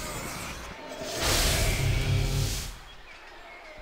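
A magic spell bursts with a loud shimmering whoosh.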